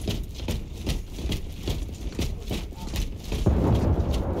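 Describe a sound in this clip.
Heavy armoured footsteps thud quickly on stone.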